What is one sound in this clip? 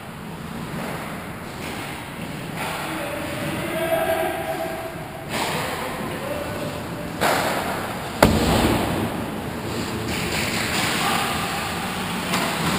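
Ice skates scrape and hiss across the ice in a large echoing rink.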